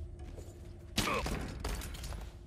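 A man gasps and grunts as he is choked.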